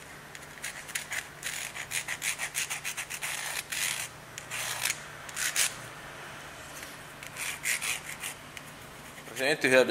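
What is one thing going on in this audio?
A felt-tip pen squeaks and scratches on wood.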